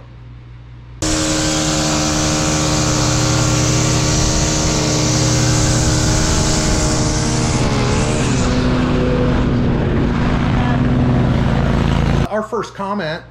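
A string trimmer engine drones loudly and steadily.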